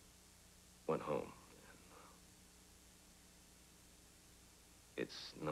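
A man speaks quietly and briefly, close by.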